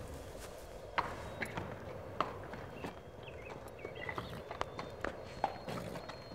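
Horse hooves clop slowly on hard ground.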